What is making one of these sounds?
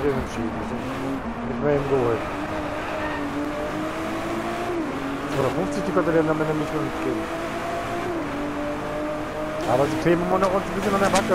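A car engine revs up again through quick gear changes.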